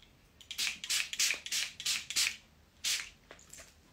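A spray bottle hisses in quick bursts close by.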